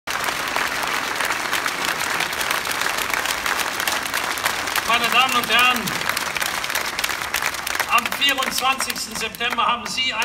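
A large crowd claps and cheers outdoors.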